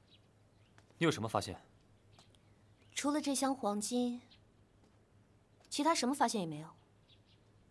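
A young woman speaks with animation close by.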